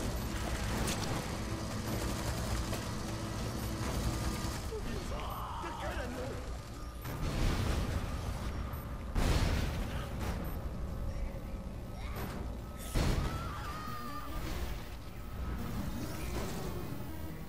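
Gunfire bursts rattle from a mounted turret.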